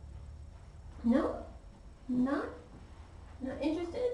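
A woman speaks softly and high-pitched, close by, in short bursts.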